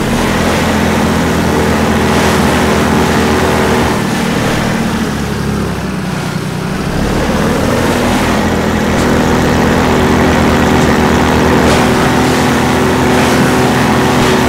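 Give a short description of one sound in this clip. An engine drones steadily as a small motor vehicle drives along.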